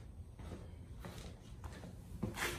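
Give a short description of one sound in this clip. Footsteps scuff close by on a hard floor.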